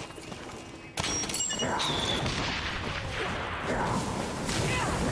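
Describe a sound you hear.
Flames burst with a loud whoosh.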